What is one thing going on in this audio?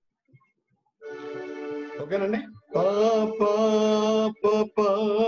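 A woman sings a melody, heard through an online call.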